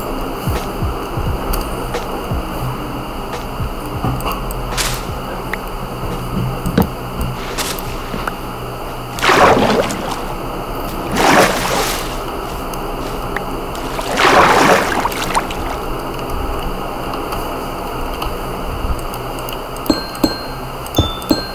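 Blocks thud as they are broken and placed.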